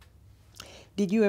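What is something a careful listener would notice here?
An elderly woman speaks calmly close to a microphone.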